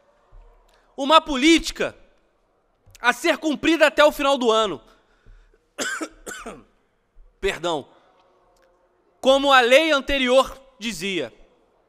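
A young man speaks formally into a microphone in short bursts with pauses.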